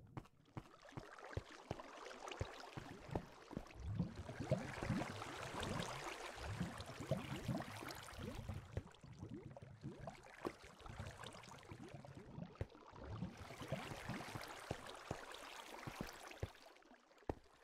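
Water flows and splashes nearby.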